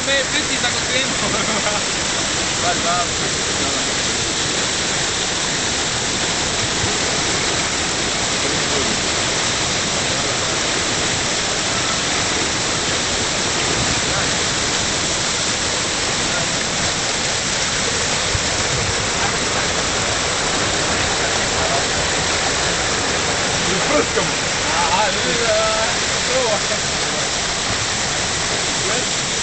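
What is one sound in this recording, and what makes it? A stream of water rushes and splashes steadily nearby.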